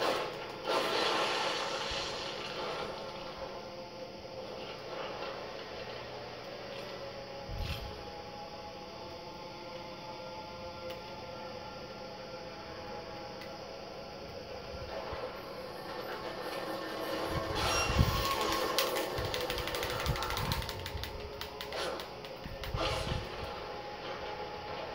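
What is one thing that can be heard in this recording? Eerie game music plays steadily from a television speaker.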